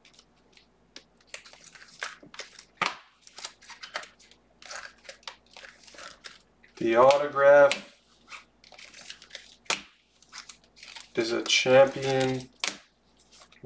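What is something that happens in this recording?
Plastic card sleeves rustle and click as hands handle them.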